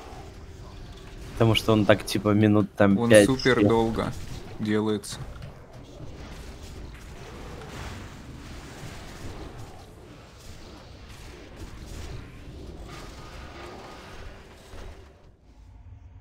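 Magic spells and weapon blows crash and boom in a fantasy battle.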